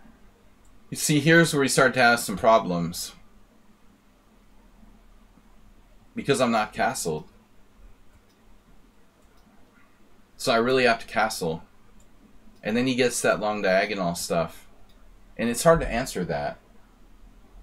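A middle-aged man talks calmly into a close microphone, in short bursts with pauses.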